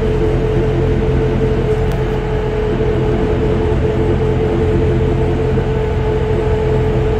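A rubber-tyred metro train rumbles at speed through a tunnel.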